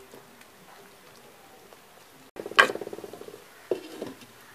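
A spoon scrapes and stirs food in a clay pot.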